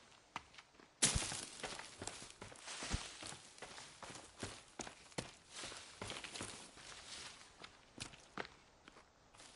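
Leafy branches brush and swish close by.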